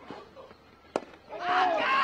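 A cricket bat sharply strikes a ball.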